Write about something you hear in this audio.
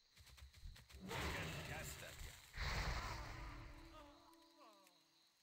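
Magic blasts and combat impacts crackle and boom loudly.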